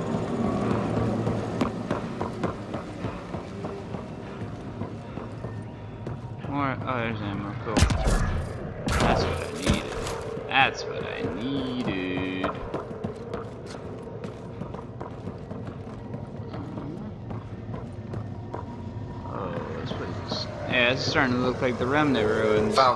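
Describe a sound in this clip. Heavy footsteps run across a hard floor.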